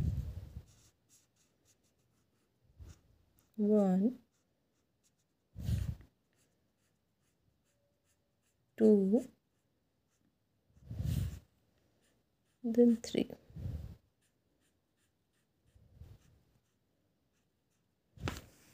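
A marker scratches softly across paper.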